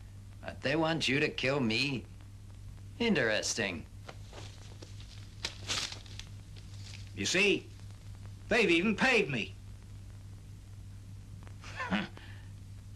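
A man speaks in a low, firm voice.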